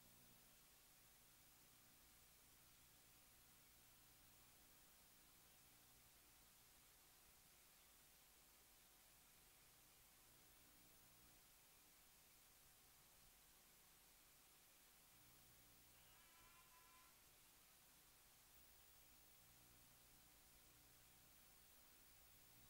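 Arcade game music plays very faintly under a steady hiss.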